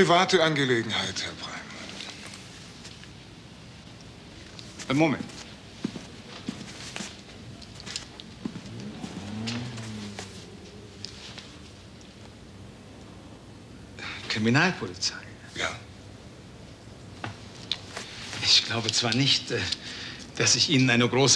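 A man speaks in a low, firm voice close by.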